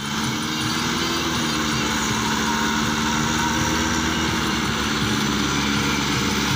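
Tractor engines rumble and chug steadily nearby, outdoors.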